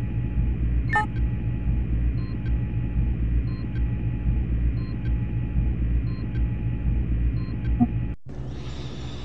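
Electronic tones beep in a steady repeating pattern.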